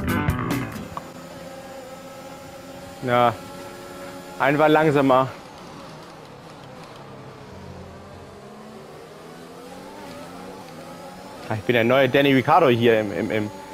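A racing car engine whines, rising and falling in pitch as it revs and shifts gears.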